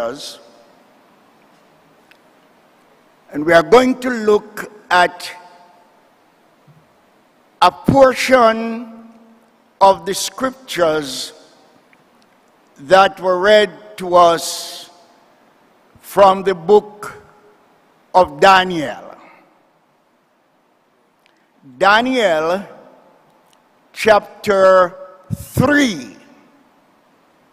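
An elderly man preaches slowly and with emphasis through a microphone, pausing between phrases.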